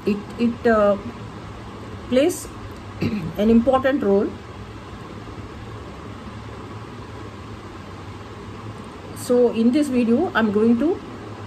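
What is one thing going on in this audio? A middle-aged woman speaks calmly and close to a microphone, with pauses.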